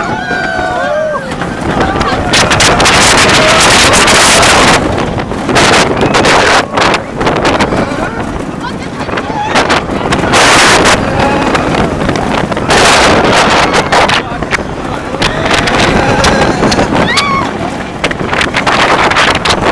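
Wind roars past in loud gusts.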